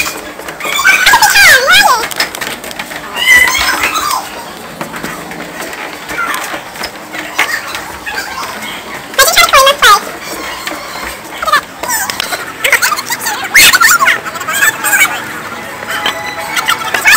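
Young people shout and laugh excitedly nearby.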